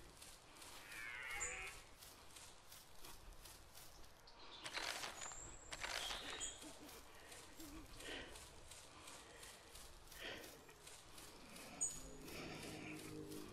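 Footsteps crunch steadily over forest ground.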